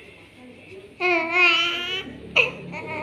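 A baby cries out briefly, close by.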